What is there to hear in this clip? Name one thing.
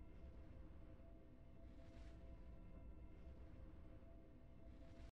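A triumphant victory tune plays from a video game.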